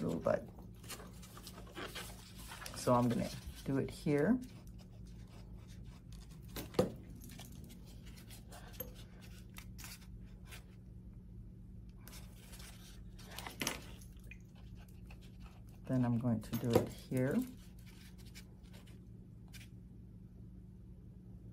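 Hands rustle and crinkle soft foam petals.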